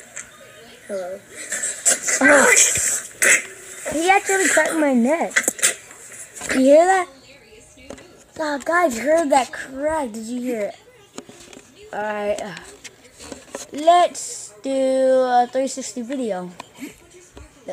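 A young person talks with animation close to a microphone.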